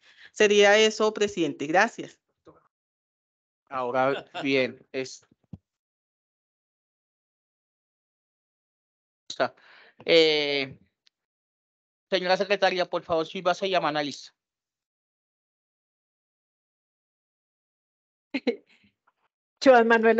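A woman speaks with animation over an online call, in bursts with pauses.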